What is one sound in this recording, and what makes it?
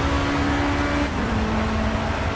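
A racing car engine drops in pitch as the gear shifts up.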